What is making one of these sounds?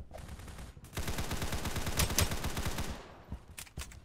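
A rifle fires in a rapid automatic burst.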